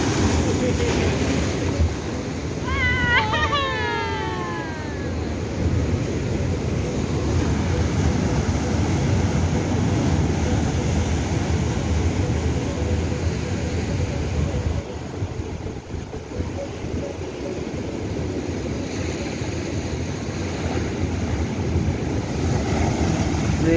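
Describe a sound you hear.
Waves crash and surge against rocks close by.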